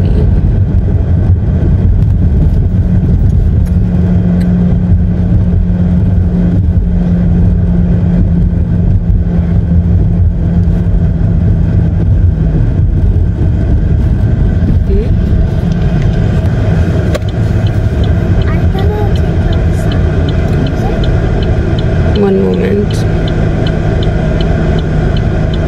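A car engine hums steadily with low road rumble from inside the car.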